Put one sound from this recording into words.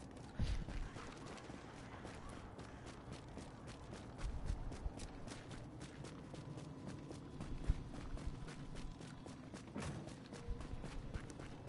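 Footsteps crunch steadily on snow.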